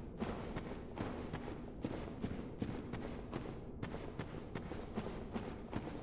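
Armoured footsteps thud on a hard floor in a steady rhythm.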